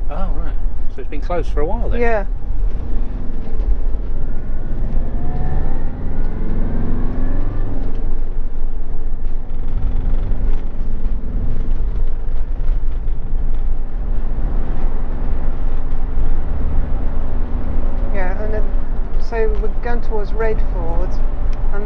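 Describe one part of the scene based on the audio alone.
A car engine hums steadily with tyres rolling on the road.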